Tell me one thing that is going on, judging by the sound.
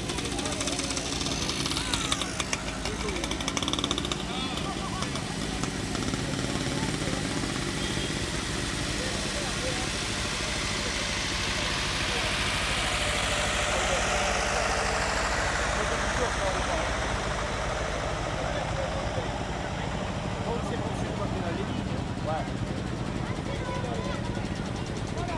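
An old tractor engine chugs steadily as it drives past close by.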